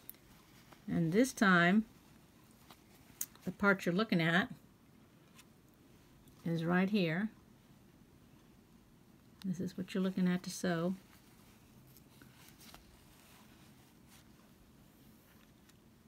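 Thread softly rasps as it is pulled through fabric.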